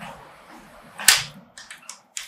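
A door clicks shut.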